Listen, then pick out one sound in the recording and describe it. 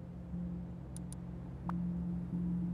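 Short soft clicks sound as menu items are picked.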